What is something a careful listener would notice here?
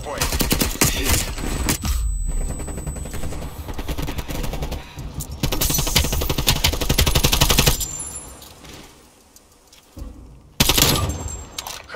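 A compact assault rifle fires in rapid automatic bursts.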